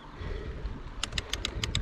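A bicycle's freewheel clicks rapidly.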